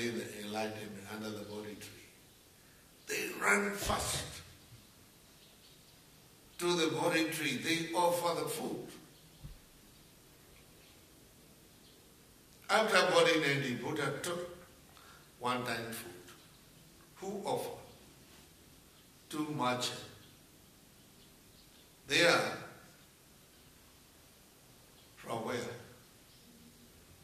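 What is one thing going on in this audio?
An elderly man speaks calmly into a microphone, in short phrases with pauses.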